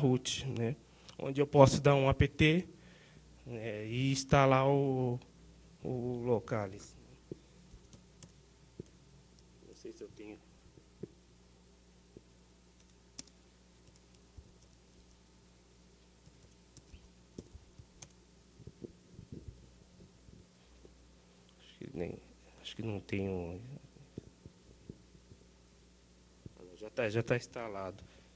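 A man speaks calmly into a microphone, pausing often.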